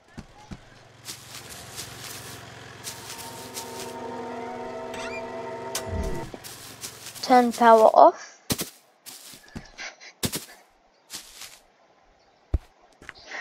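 Footsteps patter across grass and pavement.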